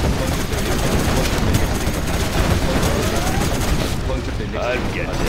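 Explosions boom and gunfire rattles in a dense battle.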